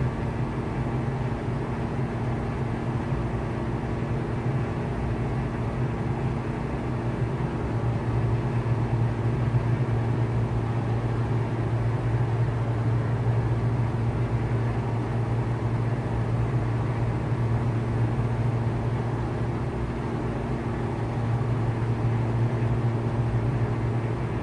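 A small propeller plane's engine drones steadily in flight.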